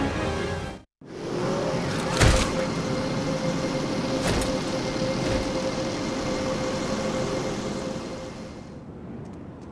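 Electricity crackles and hums steadily.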